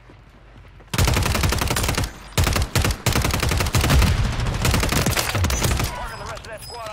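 An assault rifle fires rapid bursts of gunshots.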